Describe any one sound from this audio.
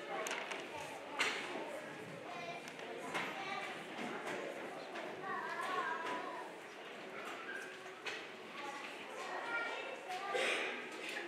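A crowd of young children chatters and murmurs in an echoing hall.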